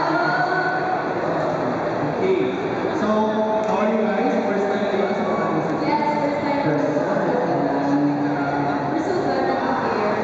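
A young woman speaks through a microphone over loudspeakers.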